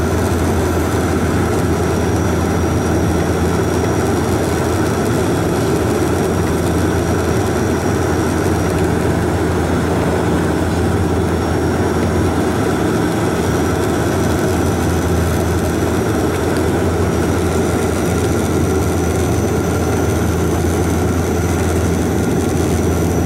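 Jet engines roar steadily, heard from inside an airplane cabin.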